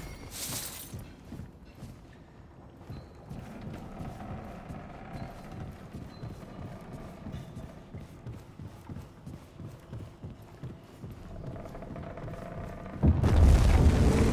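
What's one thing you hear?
Heavy footsteps thud steadily on wooden floorboards.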